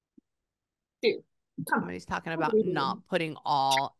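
A second woman talks with animation through an online call.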